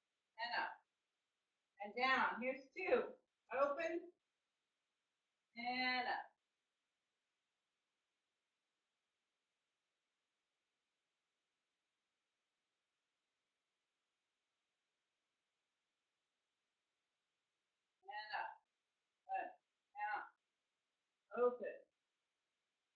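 A woman speaks in short calm phrases close by.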